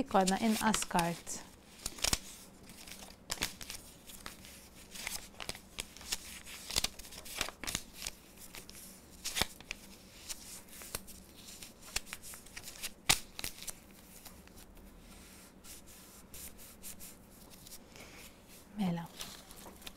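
Paper rustles and taps softly as it is folded.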